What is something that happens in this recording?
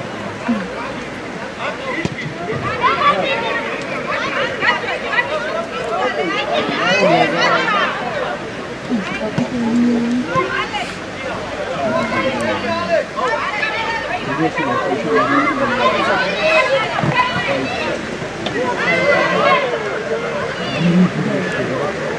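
Children shout and call out to each other across an open field.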